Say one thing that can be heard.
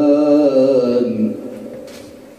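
A man sings a long, drawn-out melodic line into a microphone, ending with a lingering echo in a large room.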